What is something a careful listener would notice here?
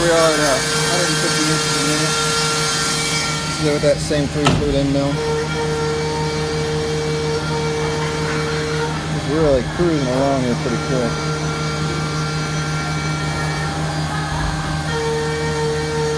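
A milling machine whirs steadily as its spindle cuts metal.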